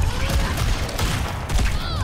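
An explosion bursts close by.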